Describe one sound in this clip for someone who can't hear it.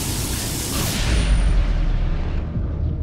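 A deep whooshing blast booms and rumbles.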